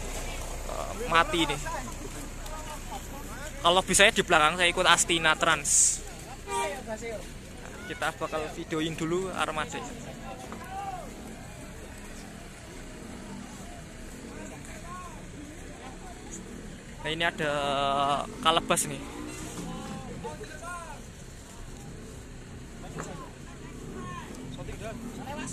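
A crowd of young men chatters and shouts close by outdoors.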